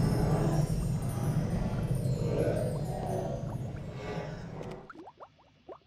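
A magic spell hums and crackles loudly.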